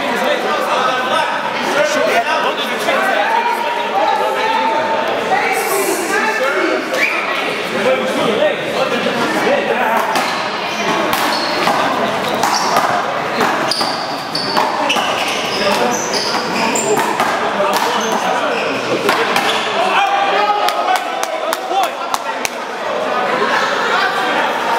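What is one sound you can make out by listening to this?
Several men talk and call out casually in a large echoing hall.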